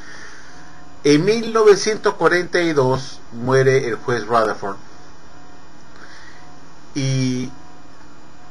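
An older man speaks calmly into a microphone, heard up close.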